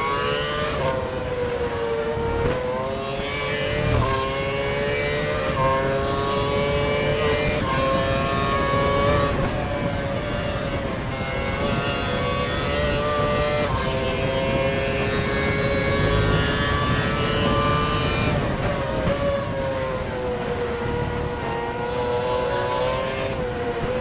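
A racing car engine whines at high revs, rising through the gears and dropping when braking.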